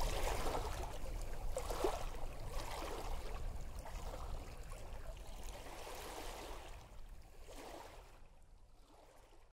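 Waves surge and wash onto a rocky shore, slowly fading.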